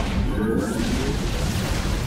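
Sci-fi laser weapons zap and buzz in a battle.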